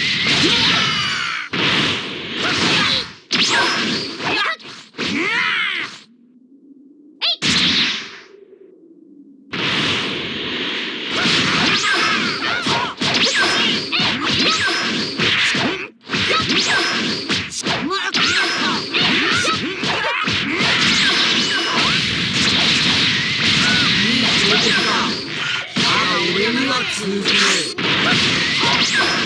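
Energy blasts whoosh and crackle loudly.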